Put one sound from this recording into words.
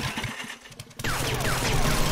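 Rock breaks apart and crumbles.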